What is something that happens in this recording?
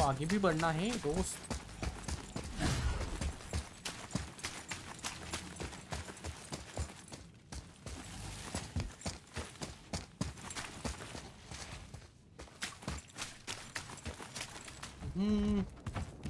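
Heavy footsteps crunch quickly over stone and gravel.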